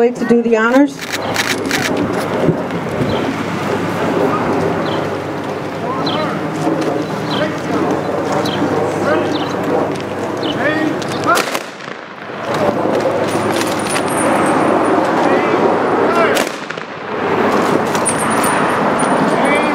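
A bugle plays a slow tune outdoors.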